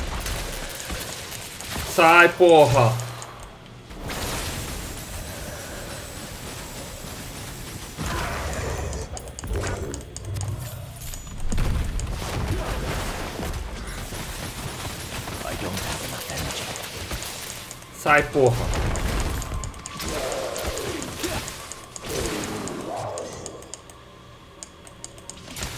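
Magic spells and impacts crackle and boom in a video game battle.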